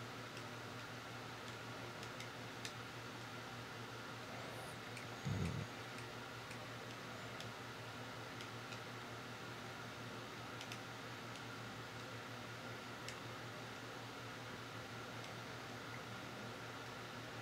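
Video game sound effects chime and click softly.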